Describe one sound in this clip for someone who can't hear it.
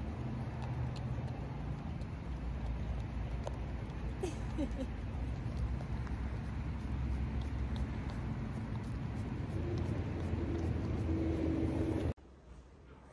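A dog laps and licks noisily from a small cup.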